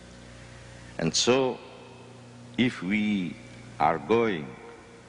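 An elderly man reads out slowly through a microphone in a large echoing hall.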